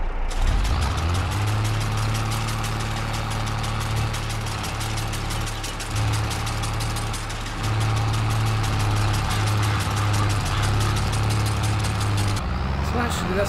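A mower blade clatters rapidly through grass.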